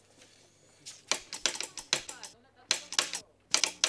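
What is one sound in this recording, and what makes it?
A telegraph key taps out quick clicks.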